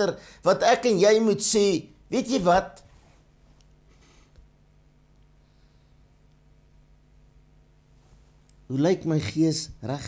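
An older man speaks calmly into a close microphone, pausing between phrases.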